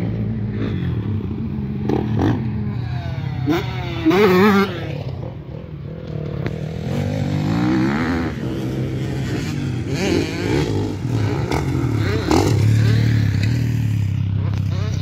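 Motocross bike engines rev and whine around a dirt track.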